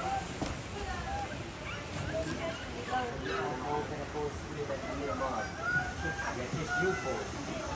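Young children talk excitedly nearby.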